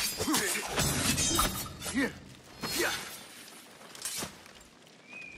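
Steel blades clash and ring in a fight.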